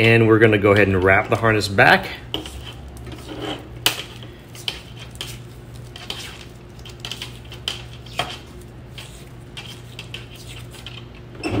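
Electrical tape peels and crackles as it is wrapped around wires.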